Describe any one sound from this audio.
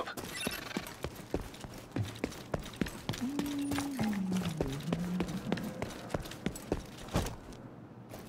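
Boots run on pavement.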